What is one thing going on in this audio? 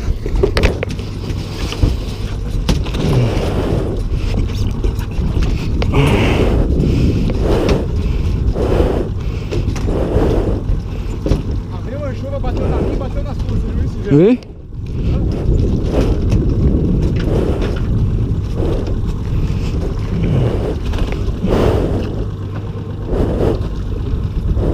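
Sea water laps and splashes against a small boat.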